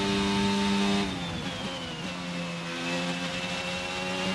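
A racing car engine drops in pitch as the car brakes hard, then revs up again.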